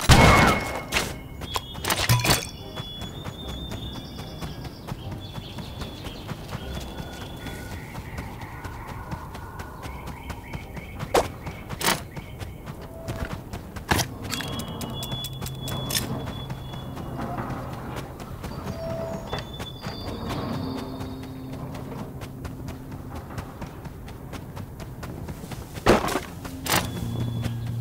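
Gunshots ring out in sharp, scattered bursts.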